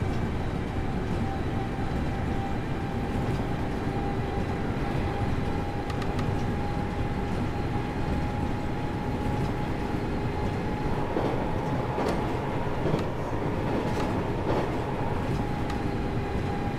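An electric train motor hums steadily.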